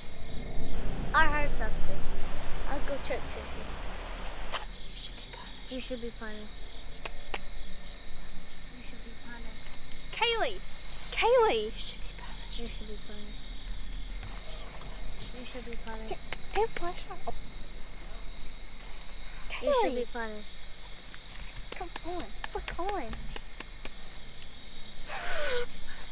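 A young girl speaks in a hushed, eerie voice close by.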